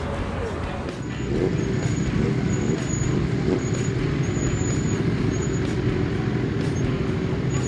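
Motorcycle engines idle and rumble nearby outdoors.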